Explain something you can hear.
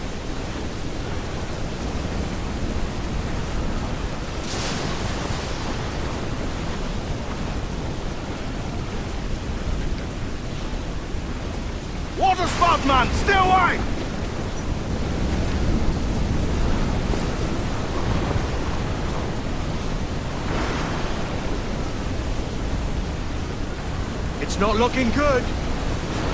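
Stormy waves crash and surge against a ship's hull.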